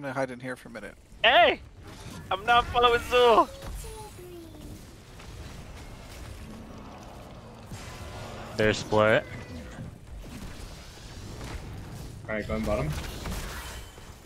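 Laser guns zap and blasts burst in a fight.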